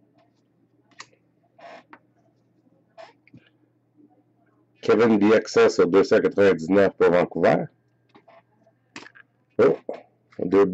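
Trading cards rustle and slide against each other in the hands.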